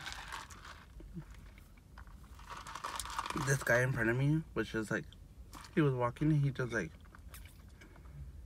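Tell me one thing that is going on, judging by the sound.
A man sips a drink loudly through a straw.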